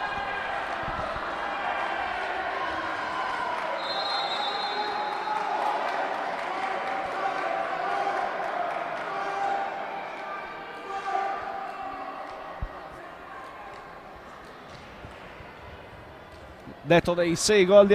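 A crowd of spectators murmurs and chatters in a large echoing hall.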